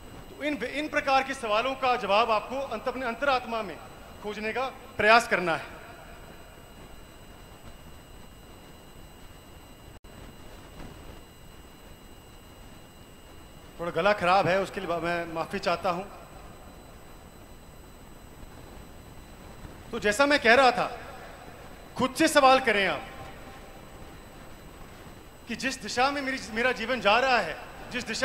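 A young man speaks into a microphone over loudspeakers, in bursts with long pauses.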